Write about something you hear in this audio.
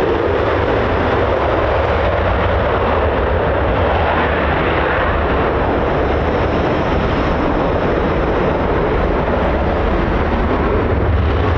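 A jet engine roars loudly as a fighter jet takes off and climbs away.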